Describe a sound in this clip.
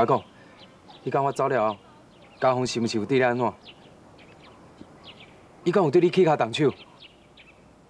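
A young man speaks urgently and questioningly, close by.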